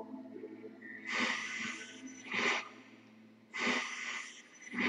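Loud static hisses and crackles in bursts.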